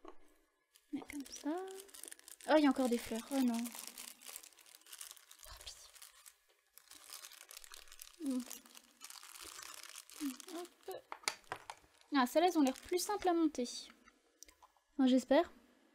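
Thin plastic wrapping crinkles and rustles as hands handle it.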